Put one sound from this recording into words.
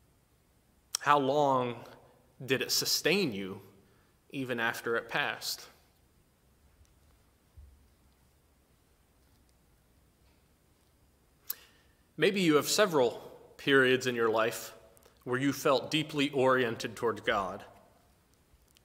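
A man speaks calmly and clearly into a nearby microphone.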